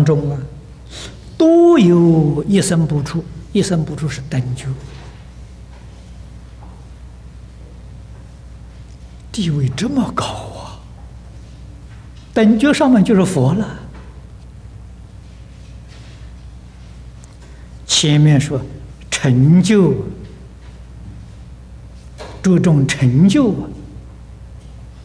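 An elderly man speaks calmly into a microphone in short phrases with long pauses.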